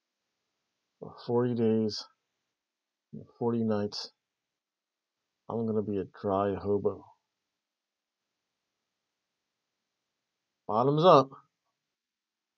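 A middle-aged man speaks calmly and close, in short phrases.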